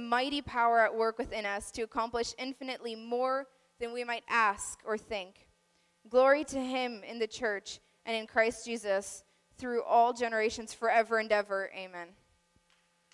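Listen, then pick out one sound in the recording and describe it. A young woman speaks calmly into a microphone, heard through a loudspeaker.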